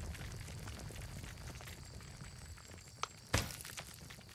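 A soft interface click sounds.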